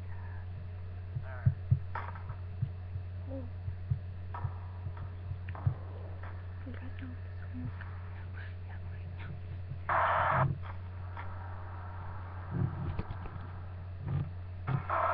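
A teenage girl speaks quietly and close by.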